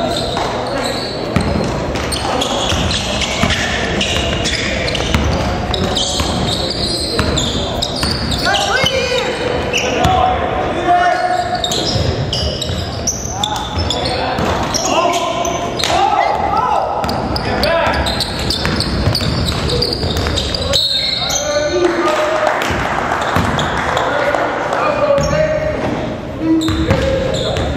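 Sneakers squeak on a wooden court.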